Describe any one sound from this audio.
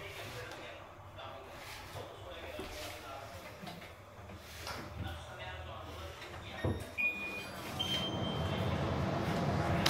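Cabinet doors click and thud as they are swung open and shut.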